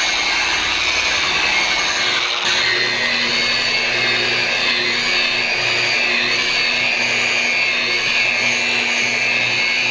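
An electric polisher whirs steadily as its pad spins against a surface.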